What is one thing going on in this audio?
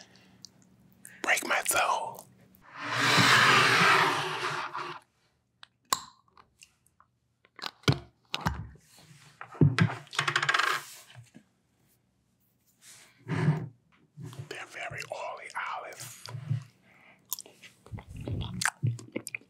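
A woman whispers and speaks softly close to a microphone.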